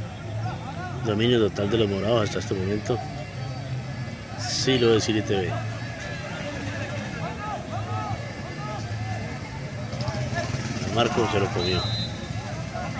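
Men shout across an open field during a football game.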